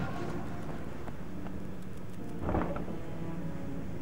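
Heavy wooden gates creak open.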